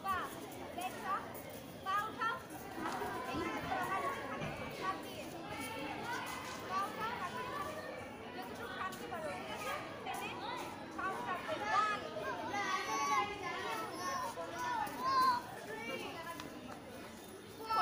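A young woman calls out instructions loudly.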